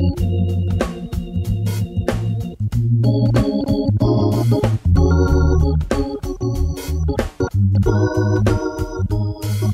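Organ bass pedals thump out a walking bass line.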